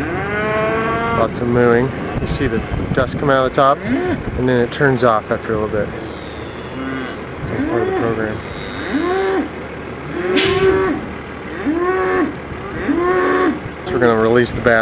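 Cattle moo and bellow repeatedly.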